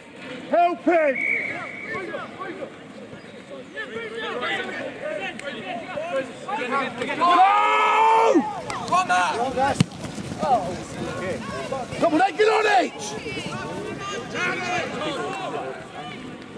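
Teenage boys shout and call to each other outdoors.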